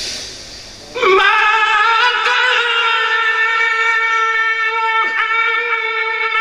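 A man sings in long, drawn-out notes through a loudspeaker.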